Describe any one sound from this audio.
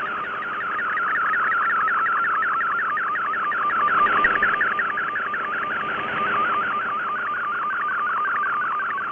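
A shortwave radio plays a fast, rhythmic warbling data signal.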